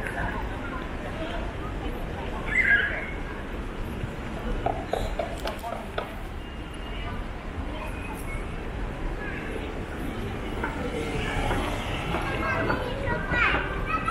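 A crowd of people chatters outdoors at a distance.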